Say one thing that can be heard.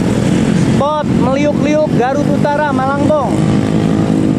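Motorcycle engines whine and rise in pitch as they rev.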